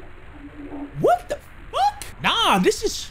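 A young man shouts and yells loudly with excitement into a microphone.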